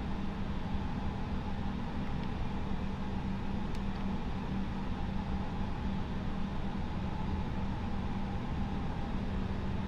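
Jet engines hum steadily while an airliner rolls along a runway.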